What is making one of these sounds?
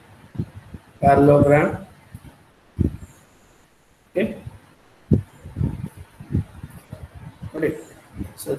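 A man speaks calmly through a microphone in an online call, in short bursts with pauses.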